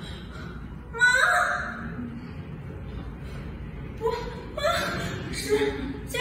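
A young woman cries out and groans in pain close by.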